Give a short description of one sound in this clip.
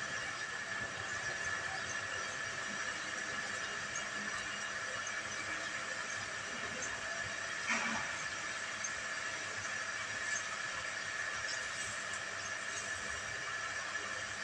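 A fire crackles outdoors.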